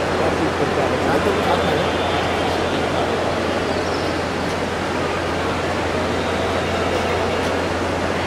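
Luggage trolley wheels roll over a hard floor.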